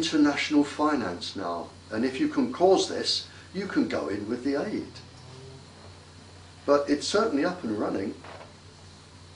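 An elderly man talks calmly and with animation, close to a microphone.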